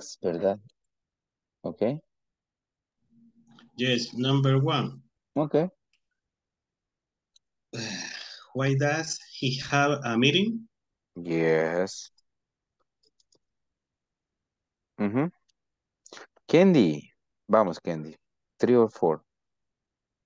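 A man speaks over an online call in short phrases.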